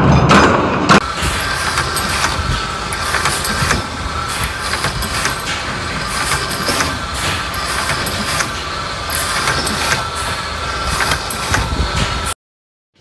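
A small press machine clatters as copper parts are fed into it.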